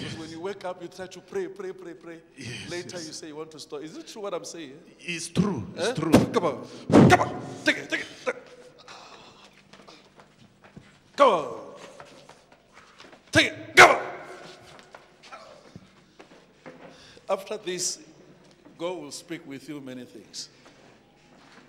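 A man preaches loudly and with fervour into a microphone, heard through loudspeakers in a large echoing hall.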